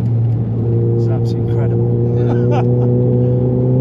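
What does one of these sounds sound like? A man laughs and exclaims excitedly close by.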